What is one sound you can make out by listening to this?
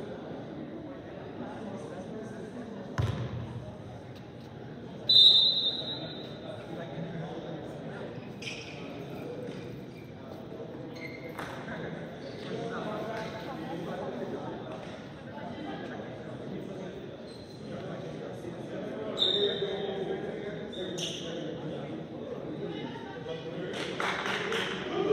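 Players and onlookers chatter in a large echoing gym.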